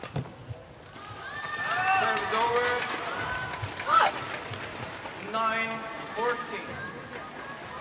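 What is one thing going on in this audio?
A crowd cheers and applauds.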